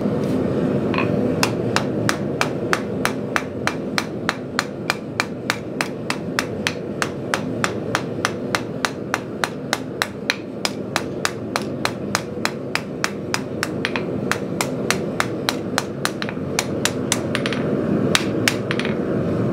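A hammer rings rapidly and rhythmically on hot metal against an anvil.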